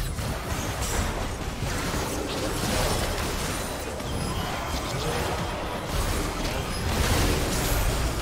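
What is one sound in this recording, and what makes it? Game battle effects crash and whoosh in a dense, continuous clash.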